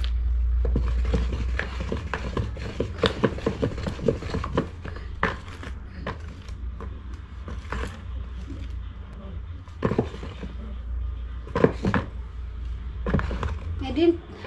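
A wooden spoon stirs a thick batter in a plastic bowl, scraping and sloshing.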